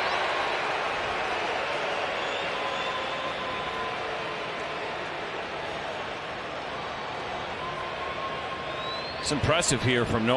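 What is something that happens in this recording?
A large crowd cheers and roars in a stadium.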